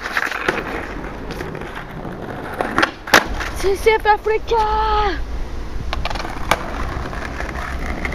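Skateboard wheels roll and rumble over paving stones.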